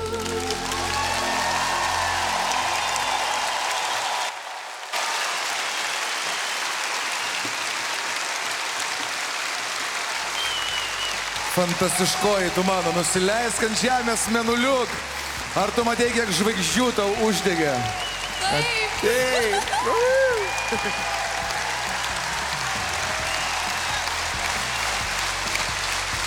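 A large crowd cheers and applauds in a big echoing hall.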